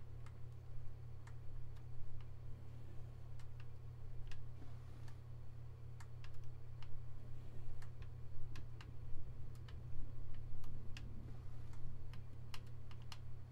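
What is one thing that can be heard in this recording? A wooden drawer slides open and thuds shut.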